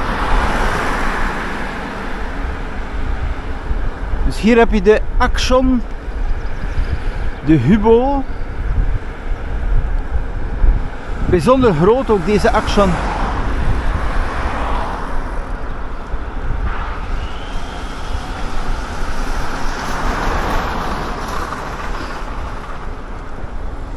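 Bicycle tyres hum along smooth asphalt.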